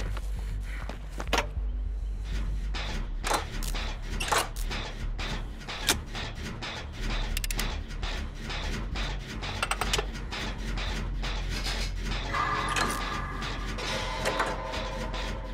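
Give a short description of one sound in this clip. A generator engine clanks and rattles as parts are worked on.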